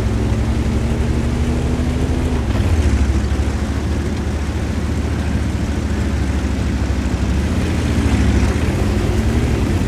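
Tank tracks clatter and squeak over the ground.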